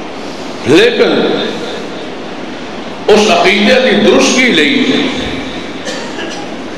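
A middle-aged man speaks with animation into a microphone over a loudspeaker, echoing in a large hall.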